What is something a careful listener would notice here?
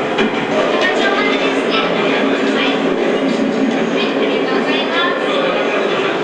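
A young woman talks calmly nearby.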